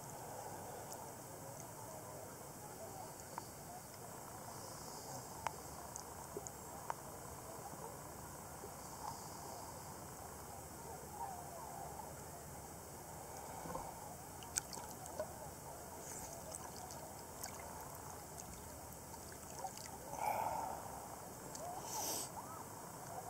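Water laps and splashes softly close by.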